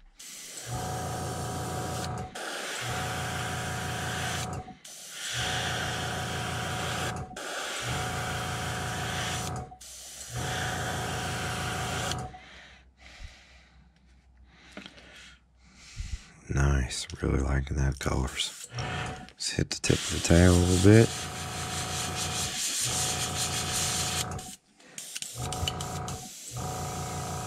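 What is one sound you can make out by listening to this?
An airbrush hisses in repeated bursts of spray.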